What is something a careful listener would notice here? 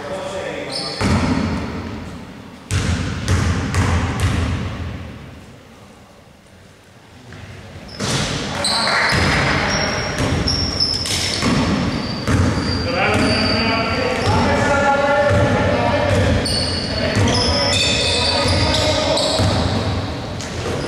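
A basketball bounces on a wooden floor in an echoing gym.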